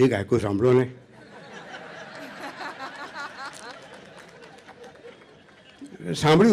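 An audience laughs and chuckles.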